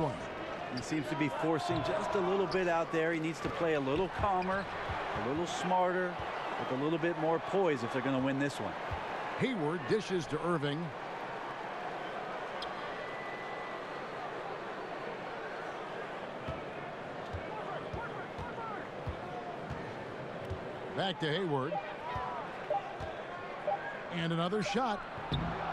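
A crowd murmurs and cheers in a large echoing arena.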